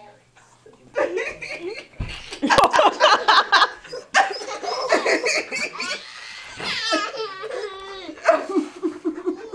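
A small child babbles and squeals excitedly.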